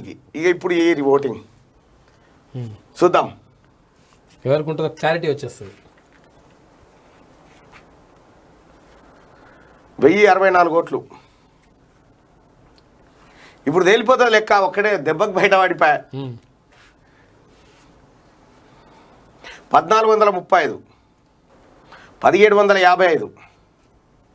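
A man speaks in short, lively bursts through a microphone, with pauses between.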